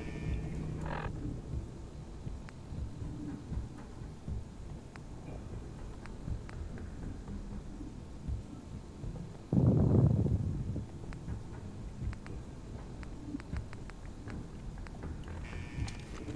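Soft electronic clicks tick now and then.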